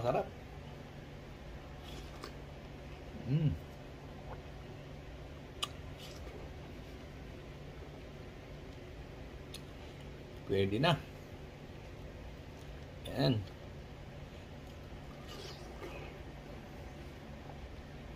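A man bites and chews juicy watermelon.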